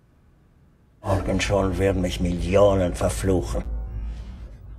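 An elderly man speaks in a low, tense voice.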